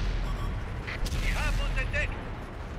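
A shell explodes with a blast.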